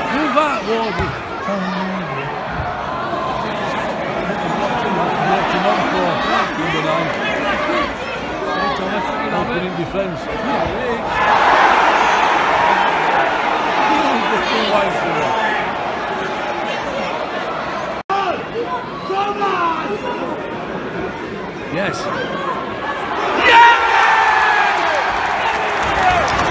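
A large stadium crowd murmurs and chants all around.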